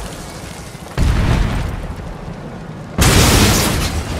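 Deep booms hit suddenly and fade.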